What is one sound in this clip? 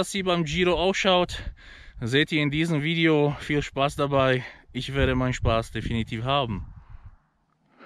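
A man talks with animation, close to the microphone.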